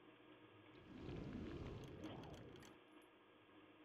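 A magic spell whooshes and crackles.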